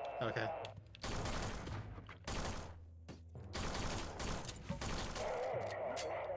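Pistol shots fire in quick bursts.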